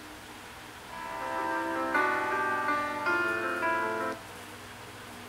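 Game music plays from a tablet's speaker.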